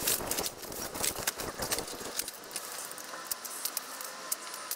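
Metal poles clink and clatter as a man unfolds a frame.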